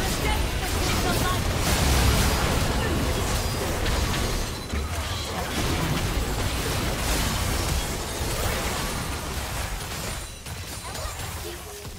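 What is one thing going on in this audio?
Game spell blasts and hits crash and whoosh in a busy battle.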